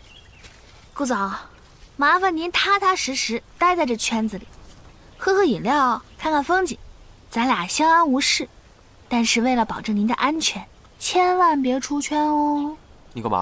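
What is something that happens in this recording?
A young woman speaks calmly and playfully up close.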